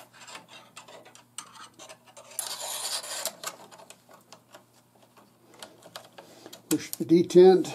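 Metal rifle parts click and clatter as they are handled.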